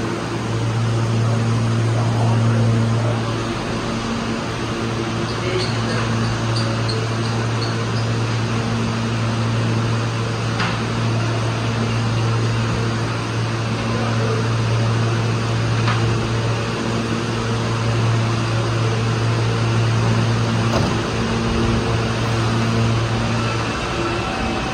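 A subway train hums steadily while standing in an echoing underground station.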